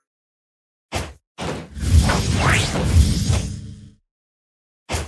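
Punches land with loud impacts.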